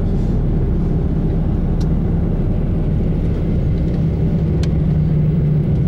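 A vehicle's engine hums low and steady while driving.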